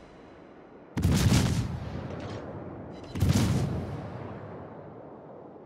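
Heavy naval guns fire in loud booming salvos that rumble away.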